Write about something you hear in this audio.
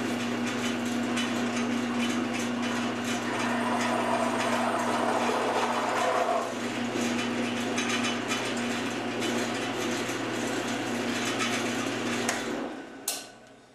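A milling machine motor hums steadily.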